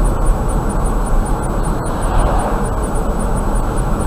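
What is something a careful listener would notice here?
A truck passes by in the opposite direction with a brief whoosh.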